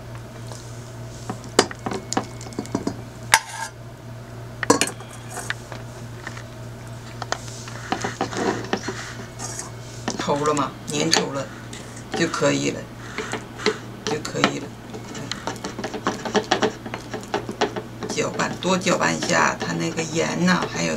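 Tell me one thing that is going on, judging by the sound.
A metal spoon clinks and scrapes against a glass bowl while stirring.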